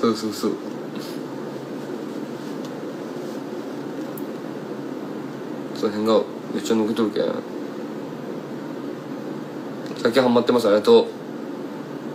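A young man speaks quietly and casually, close to a microphone, in short bursts.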